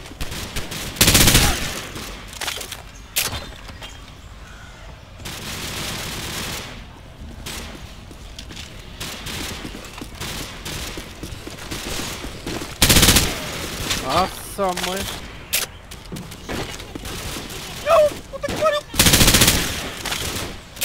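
Gunfire bursts out in loud, sharp volleys.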